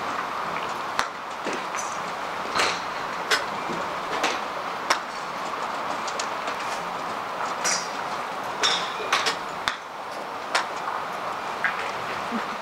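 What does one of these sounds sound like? Golf clubs strike balls with sharp clicks.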